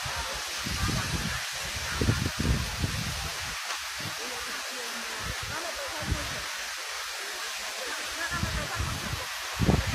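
A fountain's water jets splash and hiss steadily.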